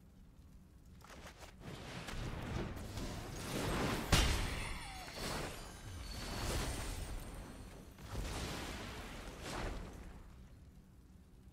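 Digital game sound effects whoosh and swell.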